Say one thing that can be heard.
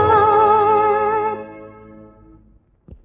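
A young woman sings a long held note, then falls quiet.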